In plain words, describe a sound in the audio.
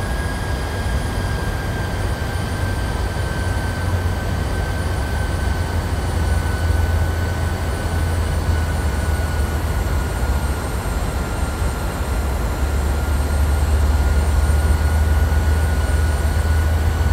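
A jet engine roars and whines steadily close by.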